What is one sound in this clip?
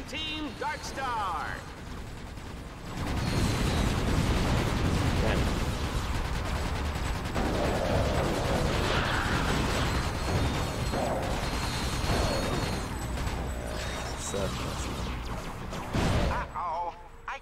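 Rapid gunfire and explosions boom from a game.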